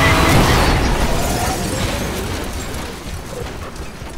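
A car crashes with a loud smash of metal and glass.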